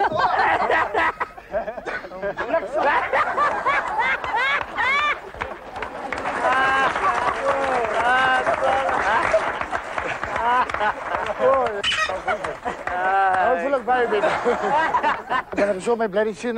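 An audience claps and cheers in a studio.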